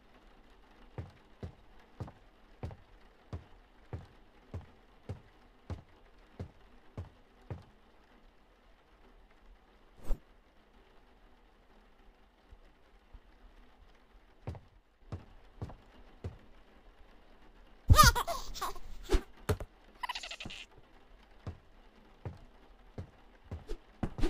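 Footsteps thud slowly and evenly on a floor.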